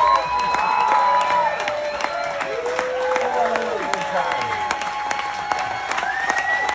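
An acoustic guitar is strummed and picked.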